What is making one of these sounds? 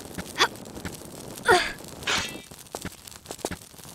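A woman grunts with effort as she climbs.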